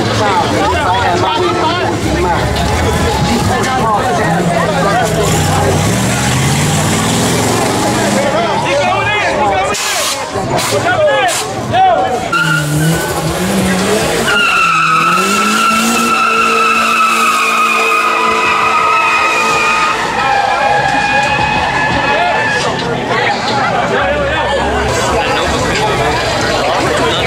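A crowd of men and women talk and shout loudly outdoors.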